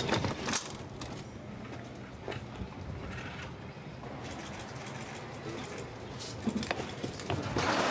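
A metal stretcher rattles and clanks as it is handled.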